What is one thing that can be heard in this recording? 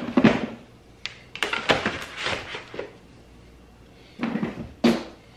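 Hard plastic items clatter and knock together as hands rummage through them.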